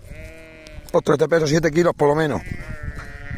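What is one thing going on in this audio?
A sheep bleats loudly, close by.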